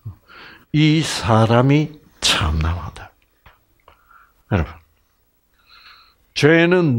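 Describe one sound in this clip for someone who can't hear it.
An elderly man speaks with animation through a headset microphone, in bursts with pauses.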